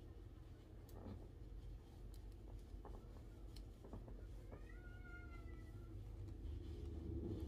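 A knit hat rustles softly against hair.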